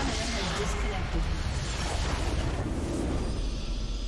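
Game sound effects burst out and then fade away.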